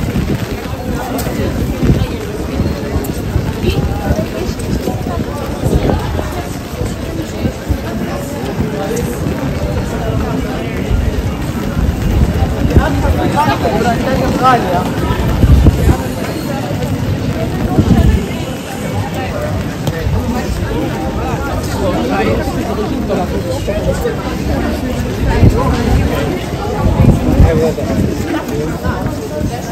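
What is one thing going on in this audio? Men and women chatter nearby as they walk past outdoors.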